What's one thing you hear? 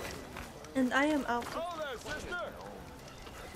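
A young woman speaks animatedly into a microphone in a high voice.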